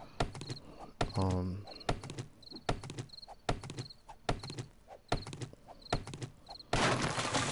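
Blows knock against a tree trunk at a steady pace.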